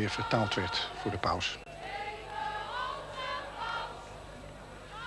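A large crowd cheers and calls out outdoors.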